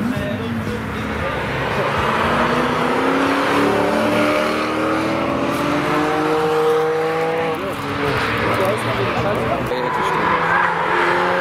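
A sports car engine roars loudly as the car accelerates past, rising in pitch.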